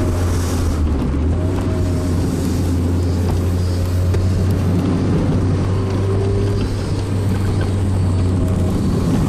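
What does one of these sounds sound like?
Wind rushes loudly past an open car.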